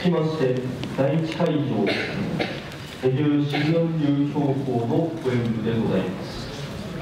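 A man speaks loudly and firmly in a large echoing hall.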